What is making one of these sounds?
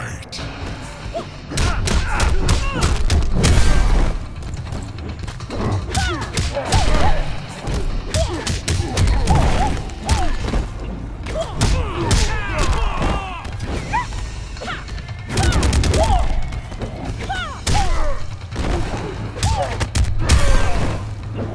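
Heavy punches and kicks land with loud thuds and cracks.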